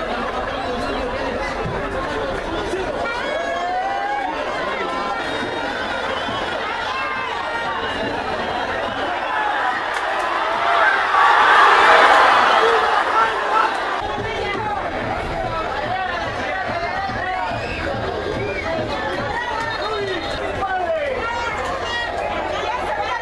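A crowd of spectators roars steadily in a large stadium, swelling to a loud cheer midway.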